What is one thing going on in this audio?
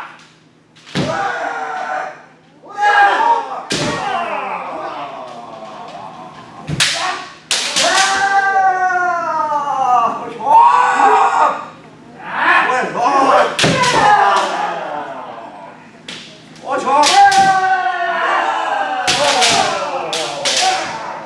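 Bamboo swords clack sharply against each other and against armor.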